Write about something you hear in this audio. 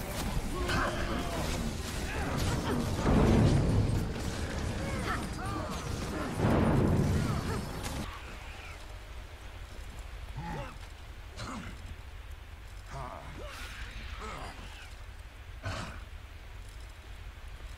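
Magic blasts whoosh and crackle in a fight.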